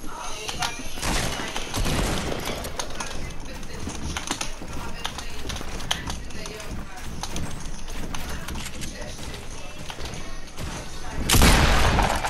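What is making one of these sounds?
Building pieces clack rapidly into place in a video game.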